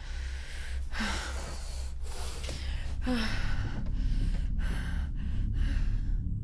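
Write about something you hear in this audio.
A young woman gasps sharply.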